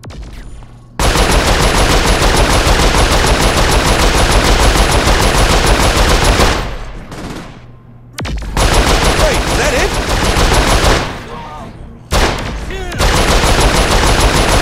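An electric weapon crackles and buzzes loudly.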